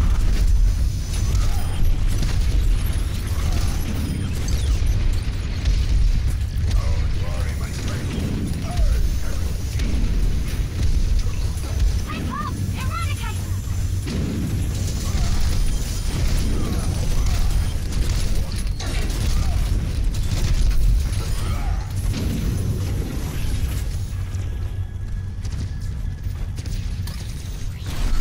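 Rapid gunfire and energy blasts crackle without pause.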